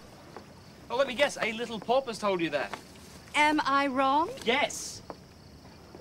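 A middle-aged woman speaks with emotion.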